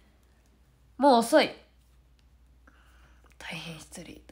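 A young woman speaks close up, in short bursts with pauses.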